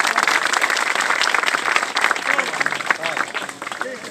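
A crowd claps hands quickly and loudly outdoors.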